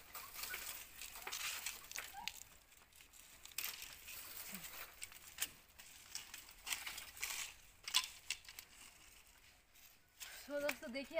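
Dry sticks and twigs rustle and snap.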